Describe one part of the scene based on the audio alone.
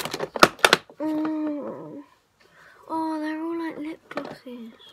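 An electronic keyboard plays long held notes.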